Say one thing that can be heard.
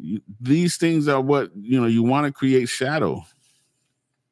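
A middle-aged man speaks with animation, close into a microphone.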